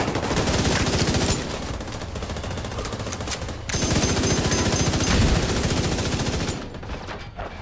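An automatic rifle fires rapid bursts of gunshots.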